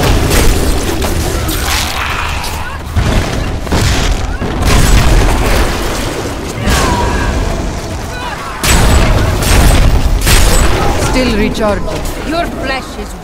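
Spells burst and crackle with loud booms.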